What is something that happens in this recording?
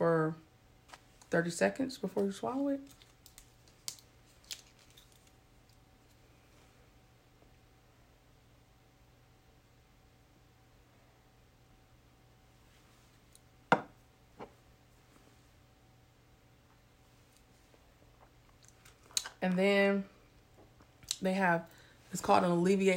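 A woman talks calmly and close to a microphone, with long pauses.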